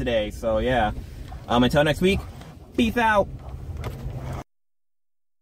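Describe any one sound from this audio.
Two men talk and laugh loudly inside a car.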